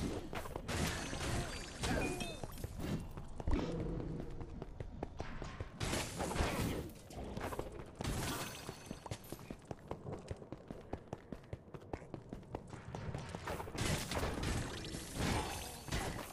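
A magic blast bursts with a crackling boom.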